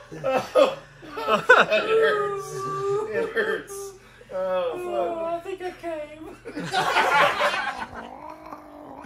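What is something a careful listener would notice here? Men laugh loudly nearby.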